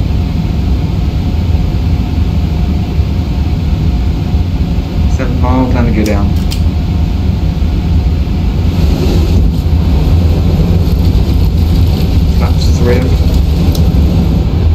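Jet engines hum with a steady low rumble.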